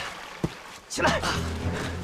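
A man shouts loudly in alarm.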